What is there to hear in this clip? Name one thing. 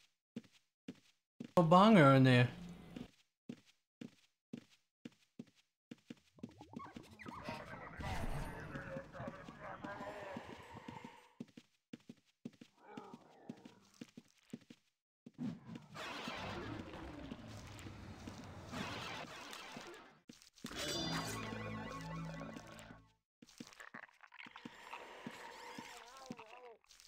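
Quick footsteps tap on a stone floor.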